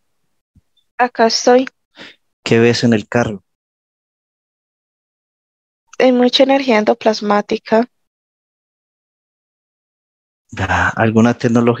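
A man speaks calmly through a headset microphone over an online call, in short phrases with pauses.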